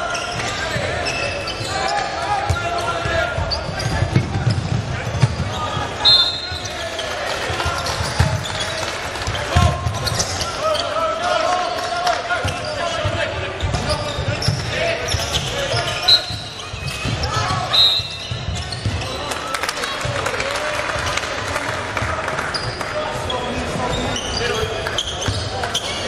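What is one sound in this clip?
A crowd murmurs and calls out in the stands.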